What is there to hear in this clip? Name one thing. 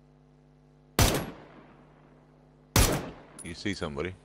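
A rifle fires two loud, sharp shots that echo away.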